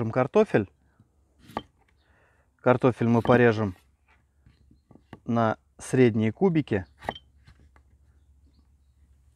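A knife cuts through a potato onto a wooden board.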